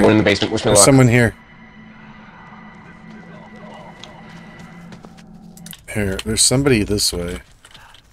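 A man's footsteps crunch quickly over dirt and grass.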